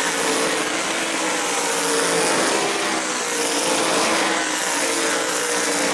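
Race car engines roar loudly around a track.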